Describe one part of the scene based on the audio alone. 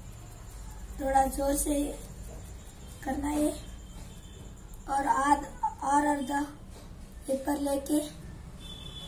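A boy speaks calmly and close by, in short phrases.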